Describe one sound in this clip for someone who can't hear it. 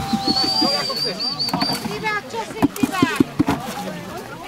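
Plastic buckets knock together.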